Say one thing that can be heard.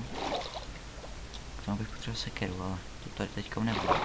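Bubbles gurgle underwater.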